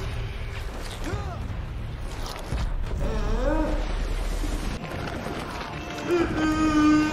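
A young woman gasps and whimpers nervously close by.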